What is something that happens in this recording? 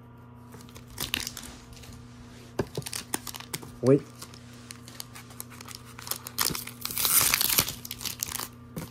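A foil card wrapper crinkles and tears open.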